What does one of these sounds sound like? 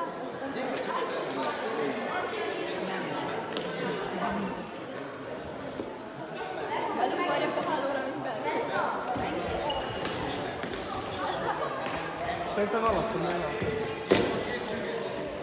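Shuttlecocks are struck with rackets, with sharp pops.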